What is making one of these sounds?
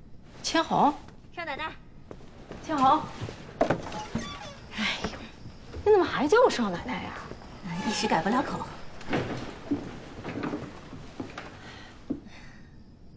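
A young woman calls out and talks brightly.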